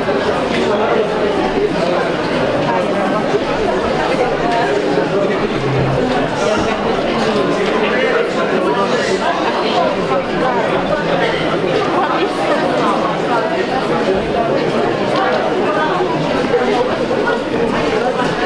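A crowd of young people murmurs.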